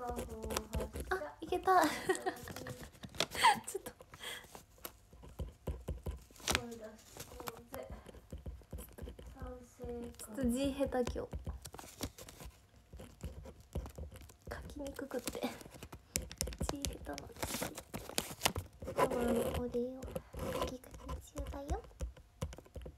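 A young woman talks softly and cheerfully close to a microphone.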